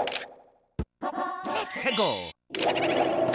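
A short video game jingle plays with a sweeping sound.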